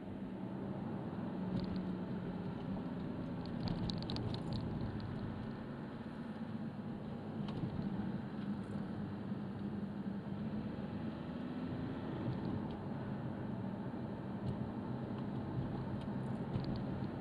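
Tyres rumble on a road.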